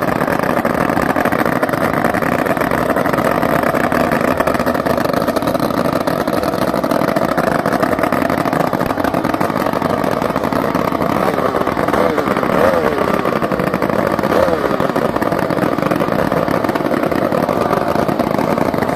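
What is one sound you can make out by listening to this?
A racing boat engine roars loudly and steadily through open exhaust pipes, revving now and then.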